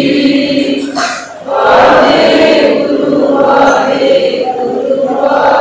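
A group of women sing together in unison in a reverberant hall.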